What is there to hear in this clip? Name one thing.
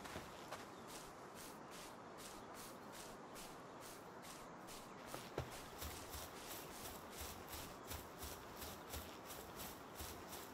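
Footsteps swish steadily through grass.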